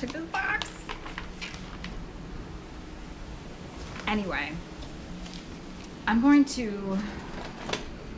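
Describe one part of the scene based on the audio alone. A young woman speaks close by, calmly and with pauses.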